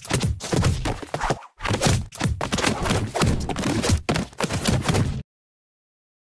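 Sword slashes and heavy hits thump rapidly in a game.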